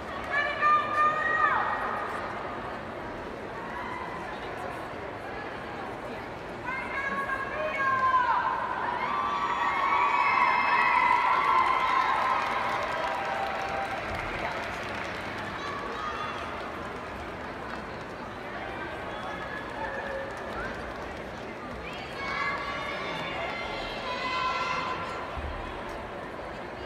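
A crowd murmurs faintly in a large echoing arena.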